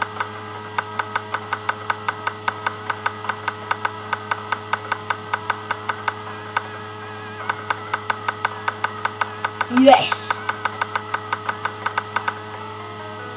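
Quick rhythmic chopping thuds of an axe on wood repeat rapidly.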